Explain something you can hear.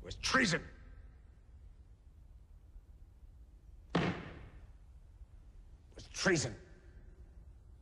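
A man shouts out short, sharp words with an echo.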